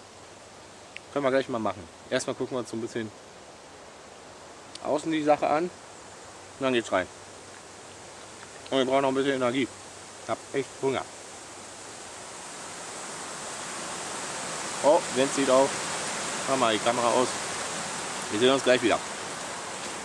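A young man talks calmly close by, in short phrases with pauses.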